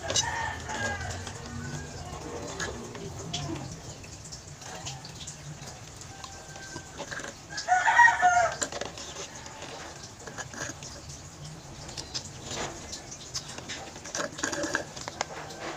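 A young woman gulps a drink noisily close to a microphone.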